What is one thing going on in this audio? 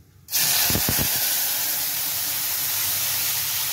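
A thin liquid pours into a hot metal wok.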